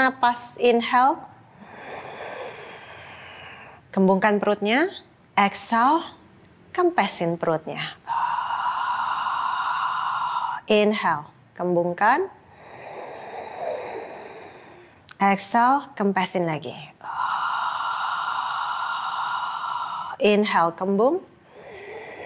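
A young woman speaks calmly and slowly, close by.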